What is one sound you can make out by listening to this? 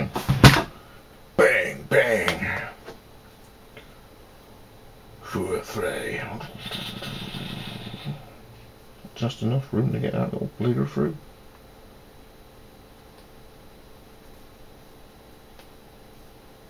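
Stiff leather rustles in hands.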